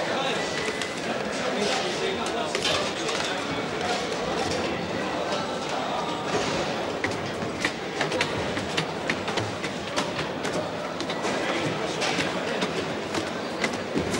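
Metal dishes and pots clatter.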